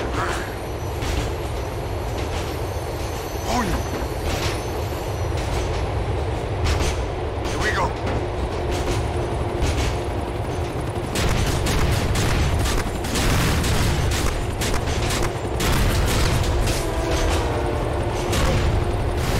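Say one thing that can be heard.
A train rumbles along rails.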